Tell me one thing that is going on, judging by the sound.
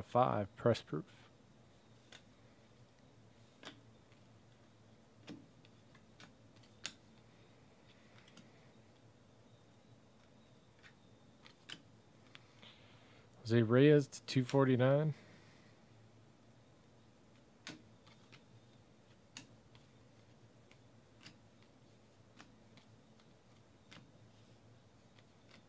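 Trading cards are shuffled and flicked with soft taps and rustles.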